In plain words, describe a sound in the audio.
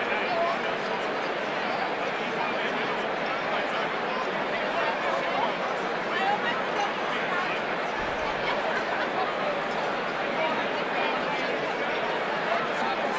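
A large crowd chatters and murmurs all around in a big echoing hall.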